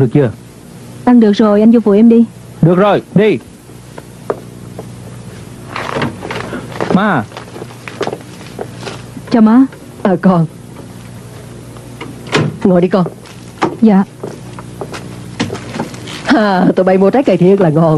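A young woman talks, close by.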